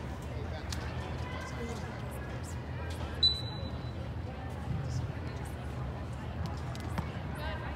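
Young women players shout to each other across the pitch.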